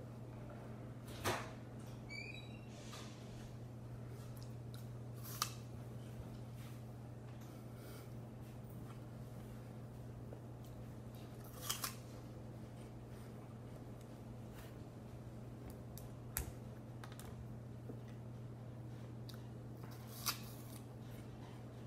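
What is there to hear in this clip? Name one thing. A teenage boy chews apple with his mouth closed.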